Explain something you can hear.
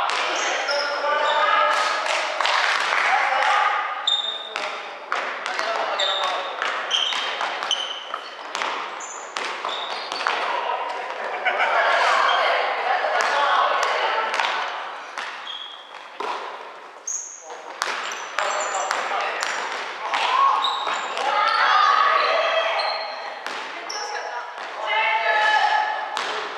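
Young men and women call out and chatter across an echoing hall.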